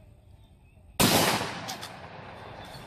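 A gun fires a loud shot outdoors.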